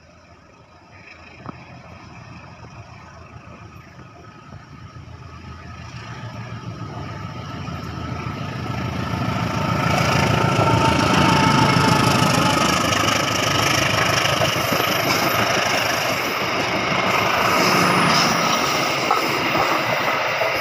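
A train approaches and rumbles loudly past on the rails.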